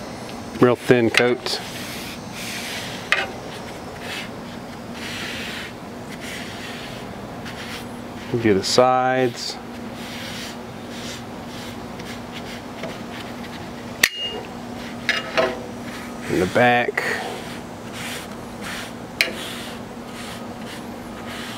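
Metal tongs scrape and clink on a metal griddle.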